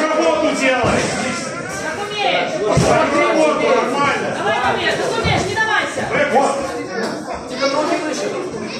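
A crowd of spectators shouts and cheers nearby.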